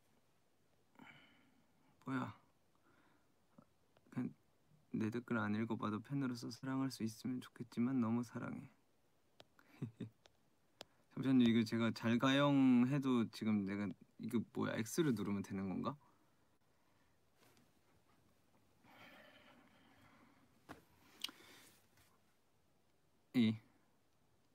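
A young man speaks softly and calmly into a close microphone.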